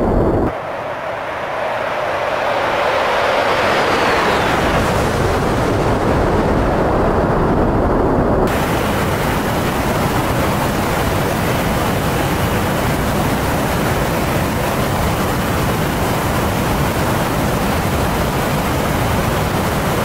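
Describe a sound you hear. Jet engines roar steadily close by.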